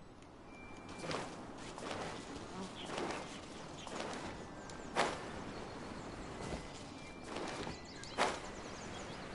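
Footsteps patter quickly over rock and grass.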